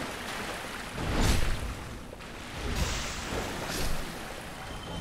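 Metal weapons clang and strike in combat.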